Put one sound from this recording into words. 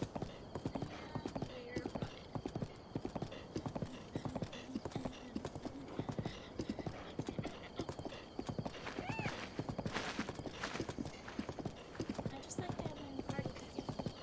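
Hooves gallop rhythmically over grass.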